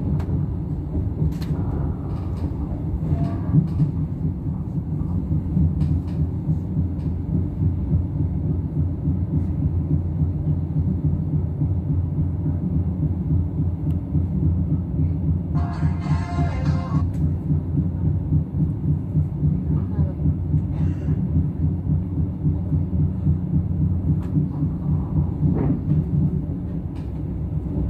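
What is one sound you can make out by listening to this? A train rumbles steadily along the tracks, its wheels clattering in a quick rhythm.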